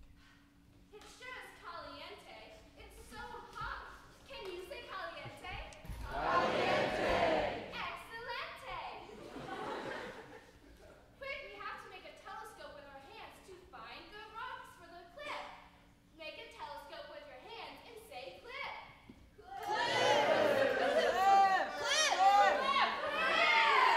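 A young girl speaks loudly in an echoing hall.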